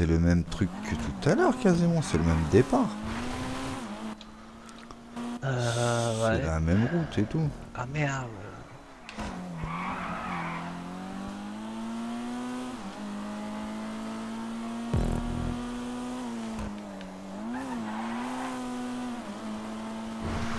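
A car engine roars and revs up and down as the car speeds along.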